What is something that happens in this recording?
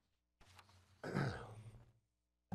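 A man coughs into his hand.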